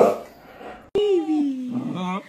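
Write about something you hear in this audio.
A dog howls with a long, falling whine close by.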